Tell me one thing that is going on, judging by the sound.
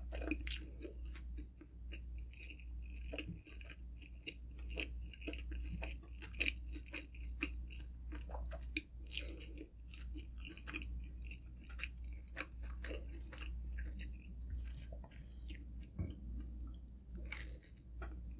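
A young woman chews food wetly and smacks her lips close to a microphone.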